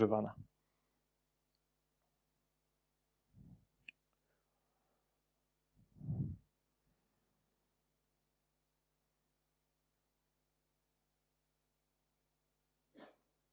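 A man speaks through a microphone in short, broken bursts with long silences between.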